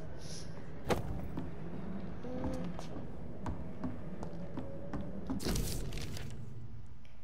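Footsteps thud on a creaking wooden floor.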